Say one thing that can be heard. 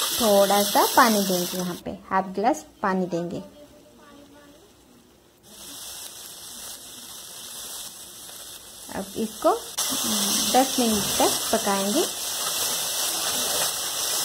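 A thick sauce bubbles and simmers in a pan.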